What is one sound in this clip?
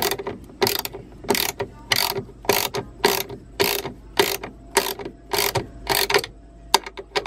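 A ratchet wrench clicks rapidly as it turns.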